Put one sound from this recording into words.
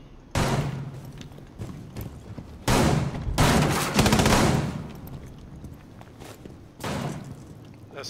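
Footsteps thud on stairs.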